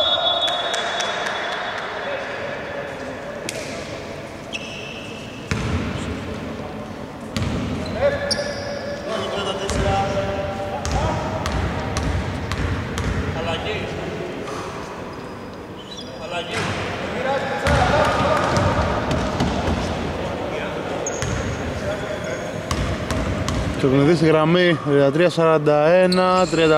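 Men call out to each other across the court.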